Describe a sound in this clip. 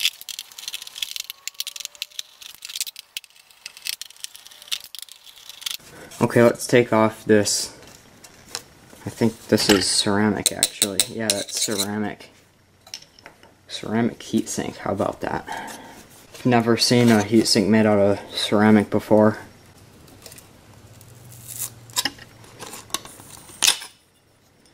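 Plastic connectors click and a circuit board rattles as it is handled.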